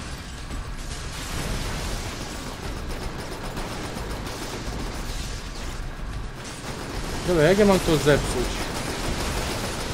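Explosions and gunfire rumble and crackle.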